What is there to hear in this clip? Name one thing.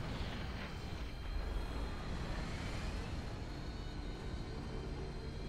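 Energy weapons fire in a battle between game units.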